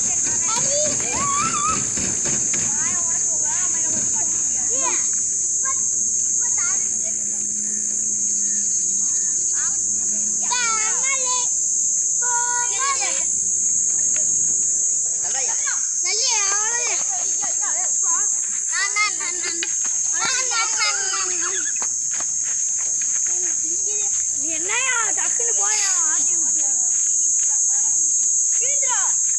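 Children shout and call out excitedly nearby.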